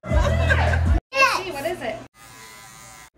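A young child laughs and squeals close by.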